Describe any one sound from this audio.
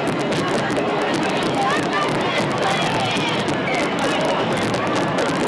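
A large crowd cheers and chatters outdoors.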